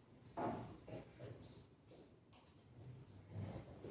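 A chess piece is set down on a wooden board with a soft knock.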